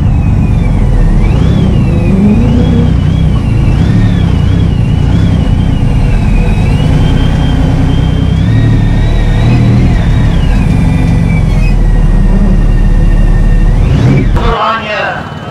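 A powerful race car engine roars loudly from inside the car, revving up and down through the gears.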